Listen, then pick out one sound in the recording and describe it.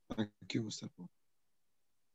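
A middle-aged man speaks briefly through an online call.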